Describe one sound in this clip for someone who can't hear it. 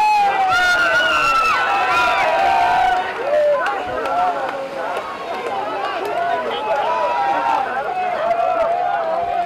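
A large crowd of people shouts and cheers excitedly outdoors.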